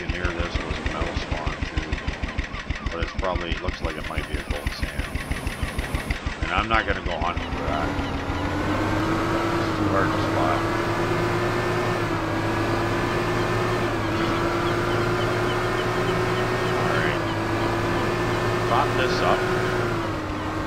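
A small outboard motor chugs rapidly, then settles into a steady drone.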